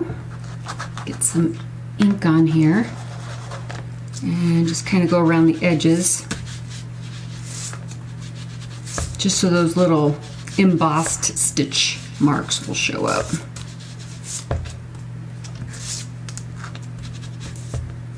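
An ink pad taps lightly on a wooden panel.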